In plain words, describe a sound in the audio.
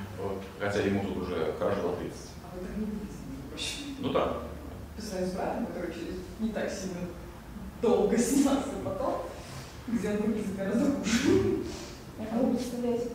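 A middle-aged man speaks with animation through a clip-on microphone.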